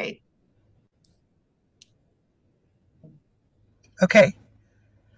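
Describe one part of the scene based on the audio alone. A woman speaks in short bursts over an online call.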